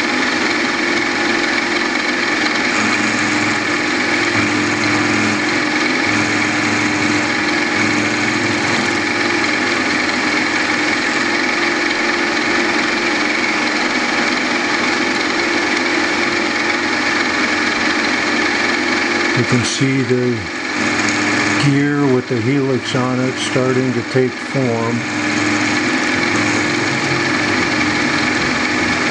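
A milling machine motor hums steadily.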